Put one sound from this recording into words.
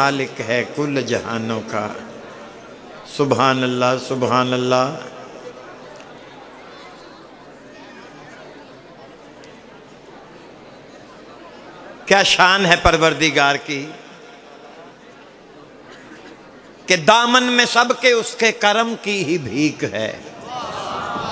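An elderly man recites with feeling through a microphone and loudspeakers, in bursts with pauses between.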